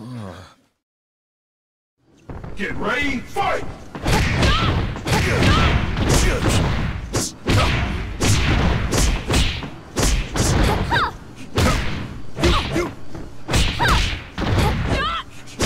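Bodies slam heavily onto a mat.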